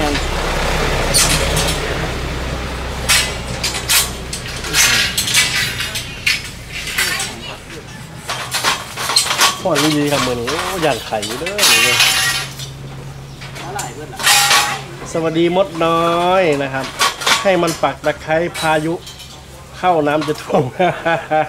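Metal scaffolding frames clank and rattle as they are put together.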